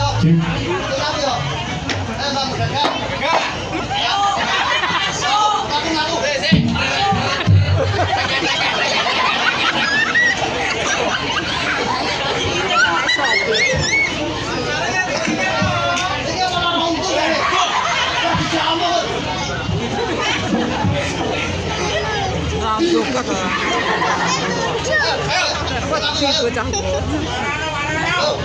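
A large crowd chatters loudly outdoors.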